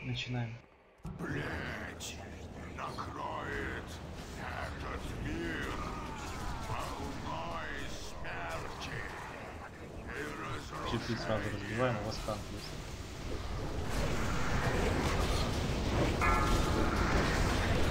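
Magic blasts and weapon clashes crash and boom in a chaotic battle.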